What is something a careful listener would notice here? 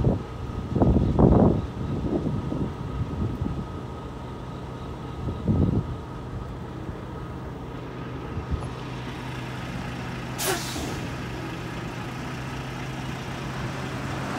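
A freight train rumbles as it approaches.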